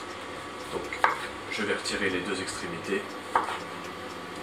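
A knife chops through a vegetable onto a wooden board.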